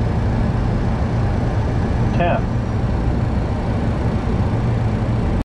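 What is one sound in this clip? Jet engines roar steadily as an airliner speeds down a runway.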